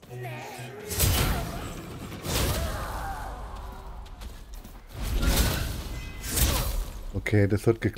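Sword blows strike and thud in a fight.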